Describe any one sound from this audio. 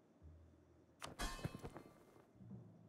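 A short clicking sound plays as a game menu opens.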